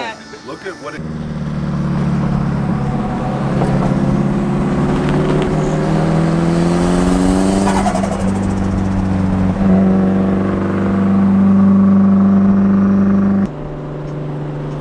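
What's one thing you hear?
A sports car's engine drones and revs as it drives alongside.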